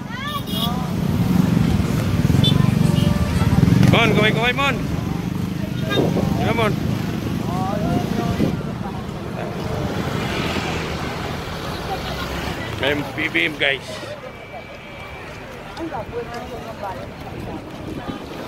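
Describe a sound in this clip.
Motorcycle engines rumble and idle outdoors.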